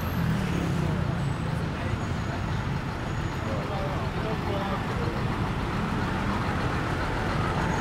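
A bus engine idles close by.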